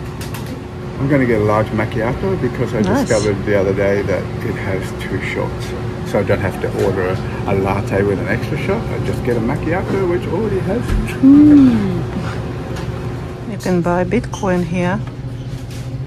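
A middle-aged man talks animatedly close to the microphone.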